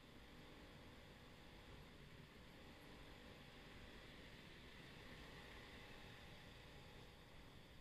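A truck engine rumbles close by as it is passed.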